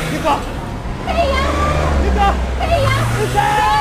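A young woman calls out loudly.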